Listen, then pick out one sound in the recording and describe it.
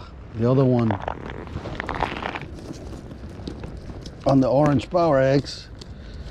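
Fabric rustles and scrapes close by as it is handled.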